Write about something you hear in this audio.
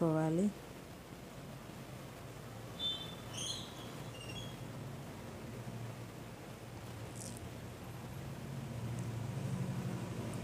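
Vegetables sizzle softly in hot oil.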